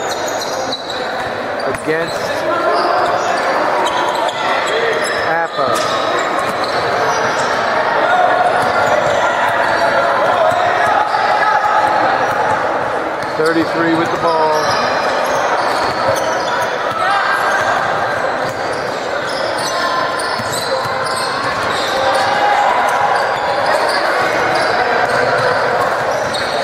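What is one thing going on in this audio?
A crowd chatters loudly in a large echoing gym.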